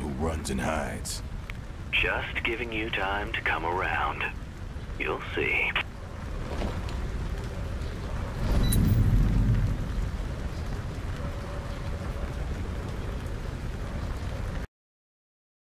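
A fire roars and crackles steadily.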